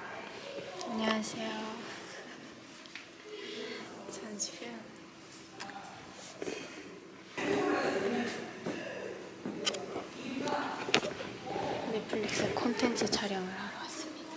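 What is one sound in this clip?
A young woman speaks softly and casually, close to the microphone.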